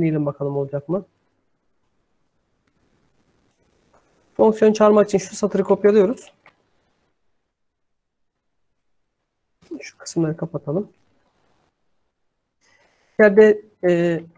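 A man speaks calmly through a computer microphone, in short bursts with pauses.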